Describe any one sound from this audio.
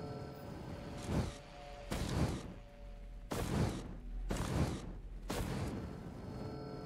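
Laser weapons fire in short, loud bursts.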